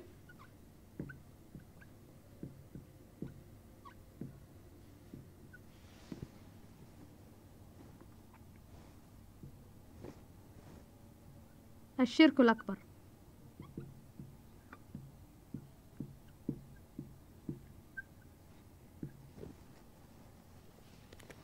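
A marker taps and scratches softly on a whiteboard.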